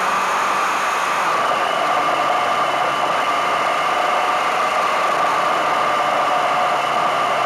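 A motorcycle engine drones at cruising speed.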